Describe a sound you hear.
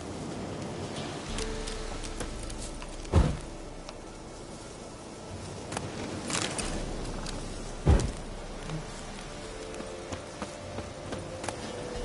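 Footsteps rustle through long grass.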